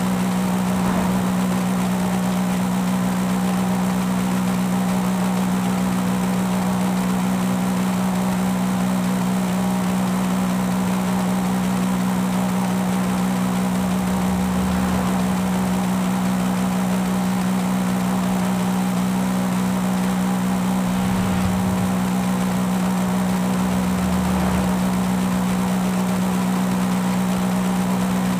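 A car engine hums steadily at a constant speed.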